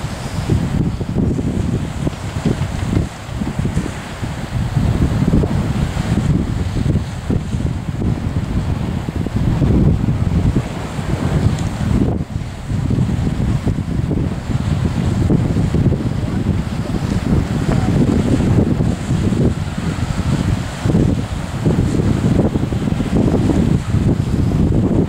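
Strong wind roars and gusts outdoors.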